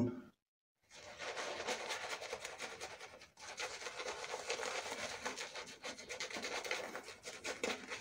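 A shaving brush swirls lather over a stubbly face.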